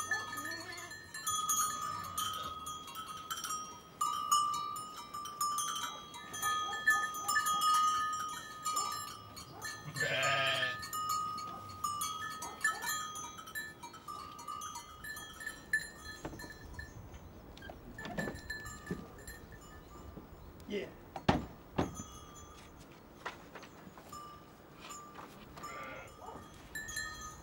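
Sheep bleat.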